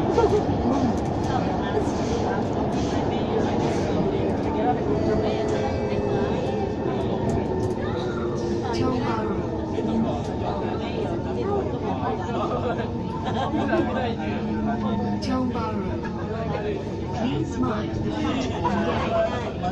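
Many people chatter nearby in a crowded carriage.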